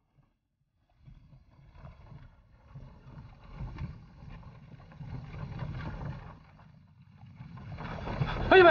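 Wooden cart wheels rumble and creak over a dirt road.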